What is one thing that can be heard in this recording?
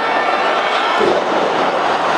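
A wrestler slams down onto the ring mat with a loud thud.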